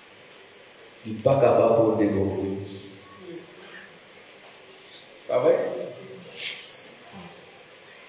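An elderly man speaks calmly into a microphone in an echoing hall, with pauses.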